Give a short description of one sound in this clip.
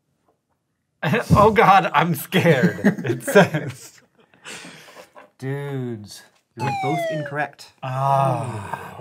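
Two young men laugh together close by.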